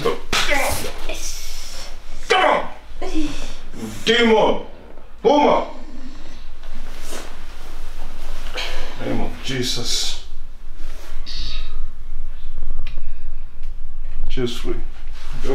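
A man speaks loudly and forcefully close by.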